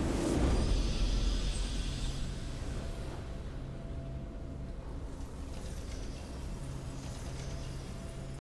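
A triumphant fanfare plays and slowly fades.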